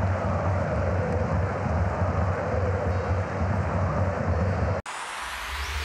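A large stadium crowd roars and chants.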